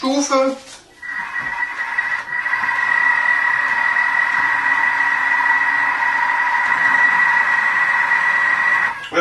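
A kitchen mixer whirs steadily with a high hum.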